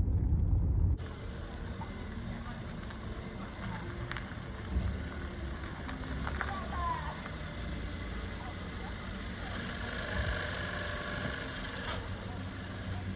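A car engine idles quietly outdoors.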